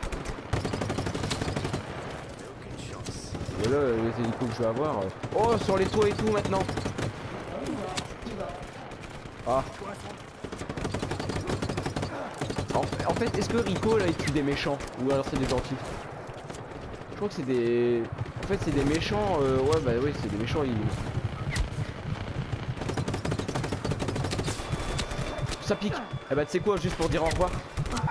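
Guns fire in rapid bursts of shots.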